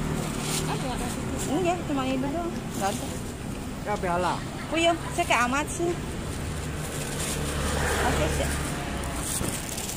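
A plastic bag rustles.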